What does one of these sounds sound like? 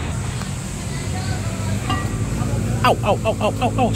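A metal lid clinks as it is lifted off a pot.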